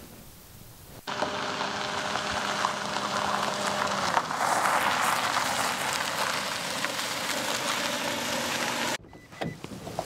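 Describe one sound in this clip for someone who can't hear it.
A car engine hums as a car drives closer.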